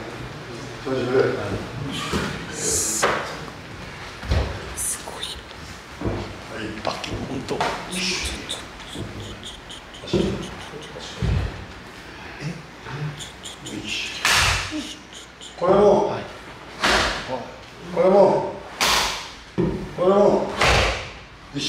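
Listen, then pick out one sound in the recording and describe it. A wooden staff knocks sharply against a body.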